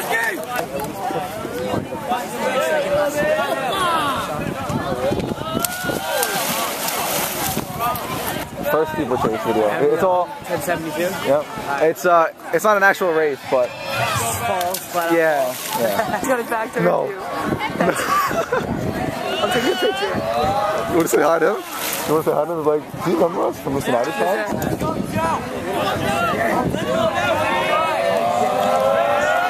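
Young people cheer and shout nearby outdoors.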